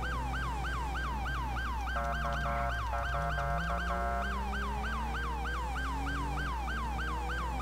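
A police siren yelps rapidly and steadily.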